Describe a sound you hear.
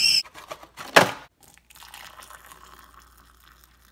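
Hot water pours into a mug.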